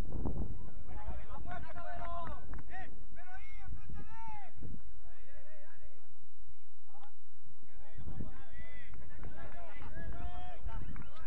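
Young men call out to each other from across a field.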